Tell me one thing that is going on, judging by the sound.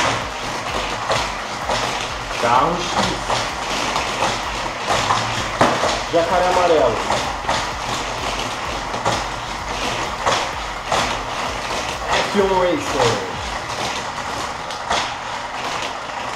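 Small toy cars roll and clatter along a plastic track.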